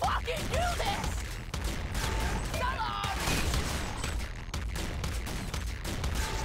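Video game guns fire in rapid bursts.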